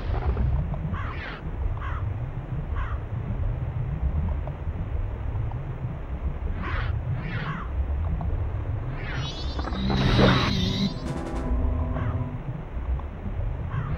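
Quick swishing strokes sound as a game character swims.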